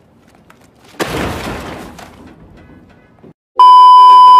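Objects crash and clatter into a metal bin.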